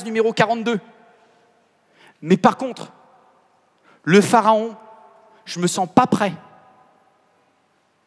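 A man speaks with animation into a headset microphone in a large echoing hall.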